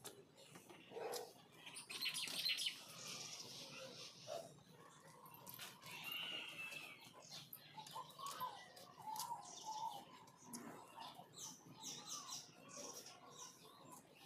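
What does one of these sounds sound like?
Damp clothes rustle and flap as they are shaken out and hung up.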